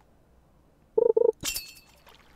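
A short double chime rings as a fish bites.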